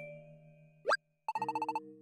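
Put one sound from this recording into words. A short rising electronic chime sounds.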